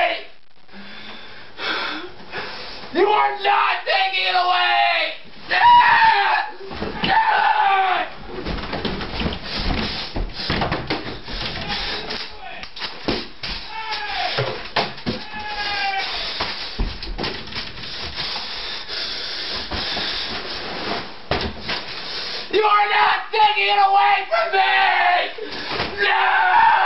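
Bedding rustles as it is pulled and shifted.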